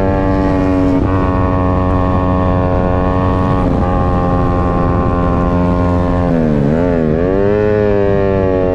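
A 150cc sport motorcycle shifts gears, its engine note dropping and climbing again.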